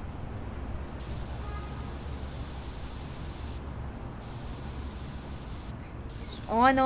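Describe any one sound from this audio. A spray can hisses in long bursts.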